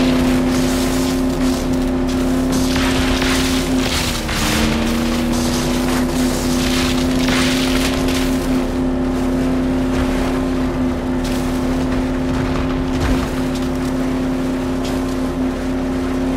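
Leaves and branches rush and swish past.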